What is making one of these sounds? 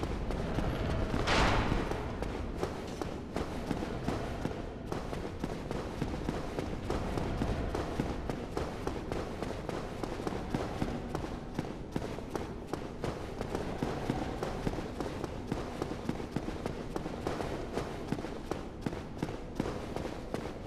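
Armoured footsteps run quickly on stone floors.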